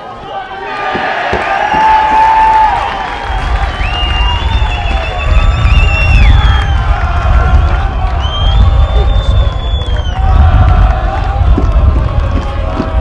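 A crowd of spectators cheers loudly.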